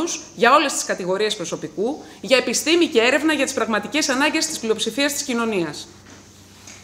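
A woman speaks with feeling into a microphone.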